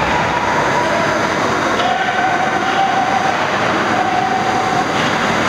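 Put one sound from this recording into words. A crowd of spectators shouts and cheers in an echoing rink.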